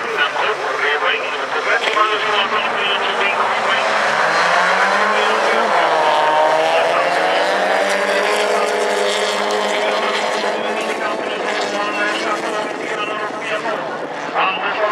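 Racing car engines roar and rev as the cars accelerate together.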